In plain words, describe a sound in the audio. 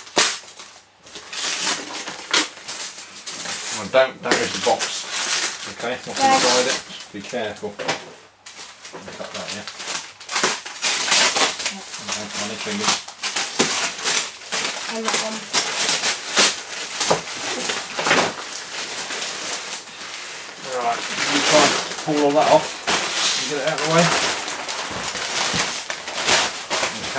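Wrapping paper rustles and tears as it is ripped open.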